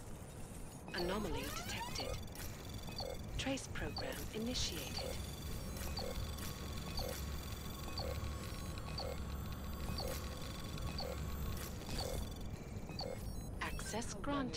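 Electronic beeps and soft clicks tick at a steady pace.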